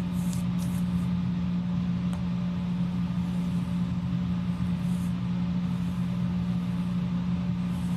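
A pen scratches lightly across paper.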